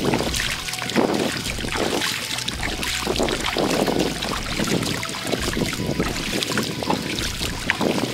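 Wet sand and water trickle and patter down from a crab held in a hand.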